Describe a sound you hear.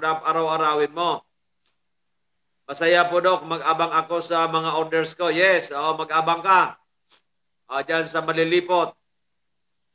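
An elderly man speaks calmly and close into a microphone.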